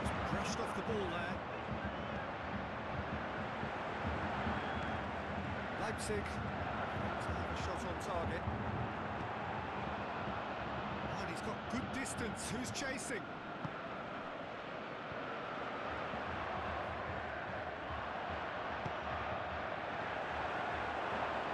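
A large crowd roars and murmurs steadily in a stadium.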